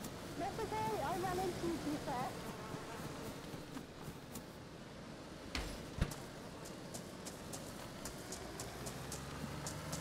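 Footsteps tread through grass at a run.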